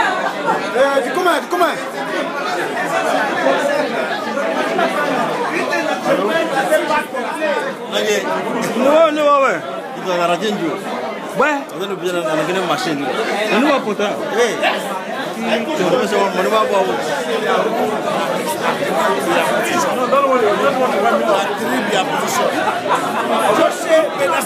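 A crowd of men and women chatter loudly nearby in a busy, crowded room.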